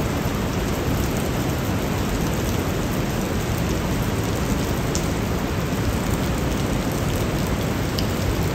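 A river rushes loudly through a narrow rocky gorge, echoing off the walls.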